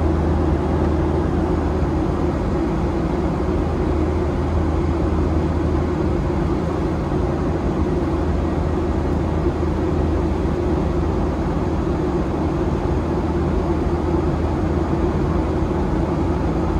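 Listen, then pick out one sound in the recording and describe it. A jet engine roars steadily inside an airplane cabin.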